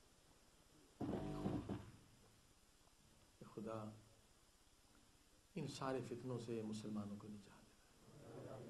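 A middle-aged man speaks slowly and deliberately into a microphone, in bursts with pauses.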